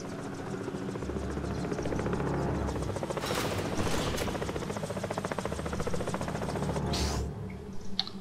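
A helicopter's engine hums steadily.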